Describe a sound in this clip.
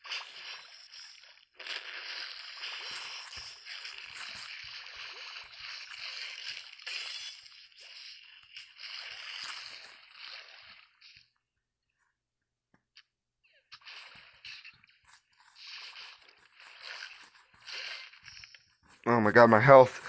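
A shark crunches and chomps on its prey in rapid bites.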